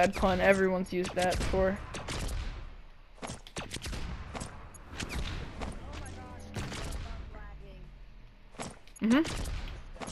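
Sharp electronic blasts and crackles burst in quick succession.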